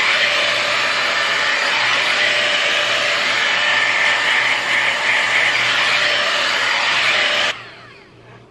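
A hot air brush blows loudly and steadily, then switches off.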